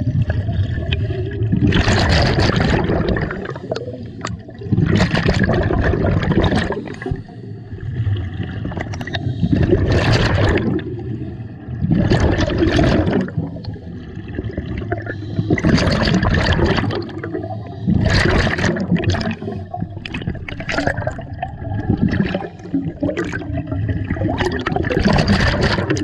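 Scuba breathing bubbles gurgle and rush loudly in bursts underwater.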